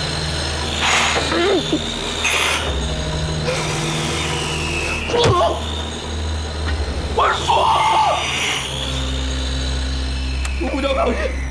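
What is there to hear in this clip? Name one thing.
An angle grinder whines steadily against metal.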